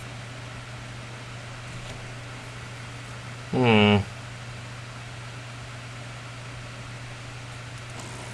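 A low electrical hum drones steadily from a machine panel.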